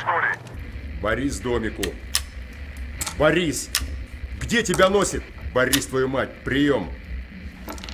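An older man speaks slowly and quietly into a walkie-talkie.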